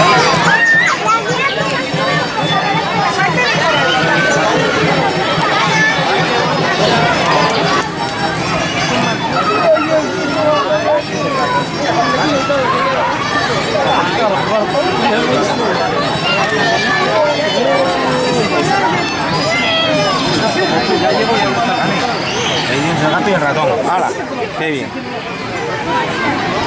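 Children talk and call out excitedly nearby.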